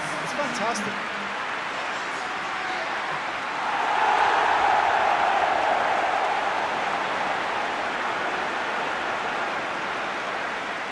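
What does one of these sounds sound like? A large stadium crowd roars steadily, swelling louder for a few seconds before easing off.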